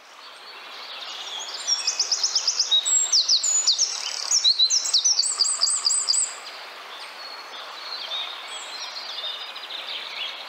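A small bird sings a loud, fast song of rapid trills close by.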